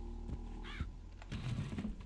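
Fire crackles and burns.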